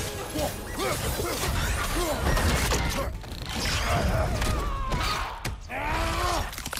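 A creature screeches and growls.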